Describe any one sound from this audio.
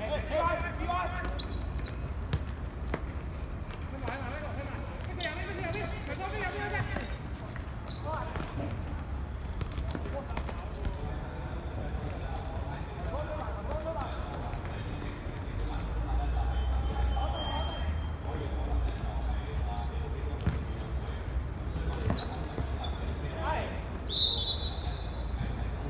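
Young men and women shout and call to each other from a distance, outdoors.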